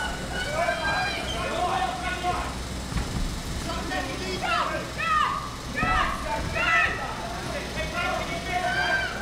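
A crowd of men and women shouts and cheers in a large room.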